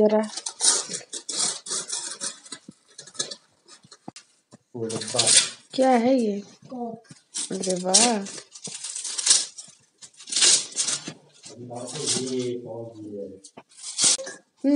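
Wrapping paper crinkles and tears as it is pulled apart.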